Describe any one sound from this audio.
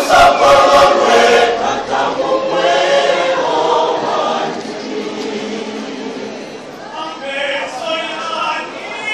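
A large group of young people sings together in a reverberant hall.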